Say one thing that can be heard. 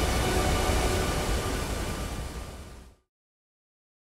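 Water roars as it pours down a high dam wall, then fades away.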